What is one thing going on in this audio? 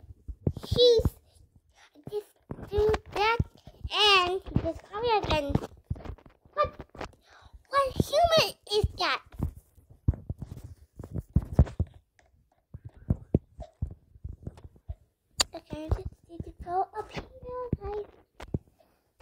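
A young girl talks and exclaims with animation, close to a microphone.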